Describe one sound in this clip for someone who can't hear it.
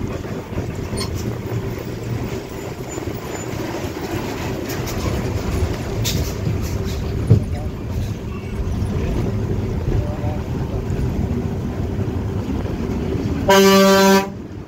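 Wind rushes past an open car window.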